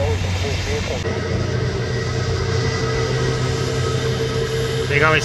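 A jet airliner's engines hum steadily as it taxis.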